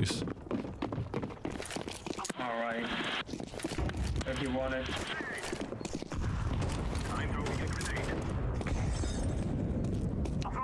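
Footsteps patter quickly on stone.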